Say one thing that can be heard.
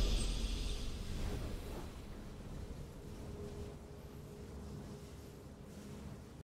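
A triumphant game fanfare plays and slowly fades.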